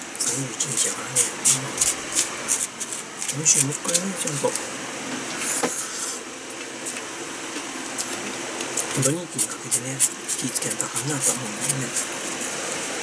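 A man talks softly up close, with his mouth full.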